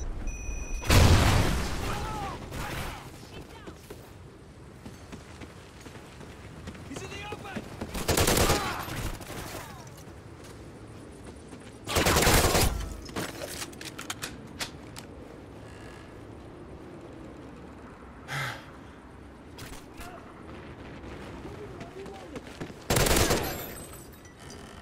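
Rifle gunfire rings out in short, loud bursts.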